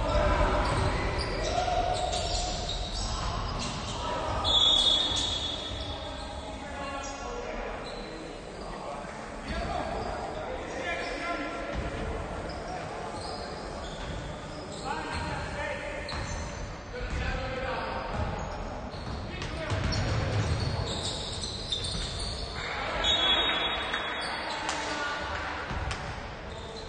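Sneakers squeak sharply on a hardwood court, echoing in a large hall.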